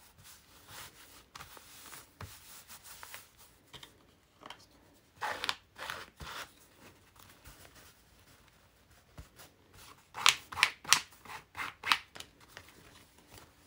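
Paper rustles and crinkles as hands smooth and fold it.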